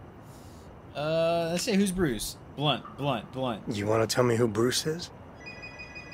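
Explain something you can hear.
A man speaks with surprise, close by.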